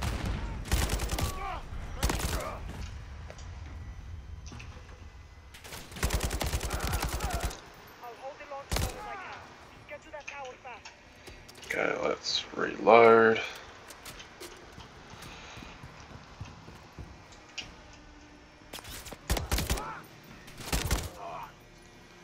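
Rapid gunfire rattles in bursts with a booming echo.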